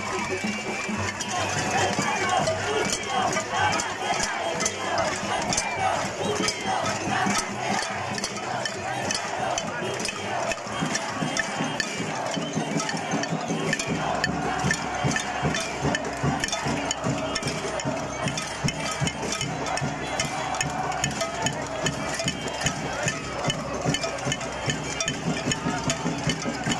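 A large crowd outdoors chants and shouts together loudly.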